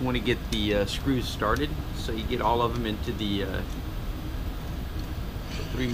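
An Allen key scrapes and clicks against a metal bracket.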